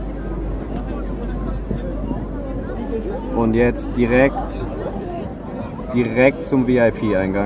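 A crowd chatters in the distance.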